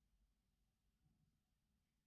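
A sanding stick scrapes softly on a plastic part.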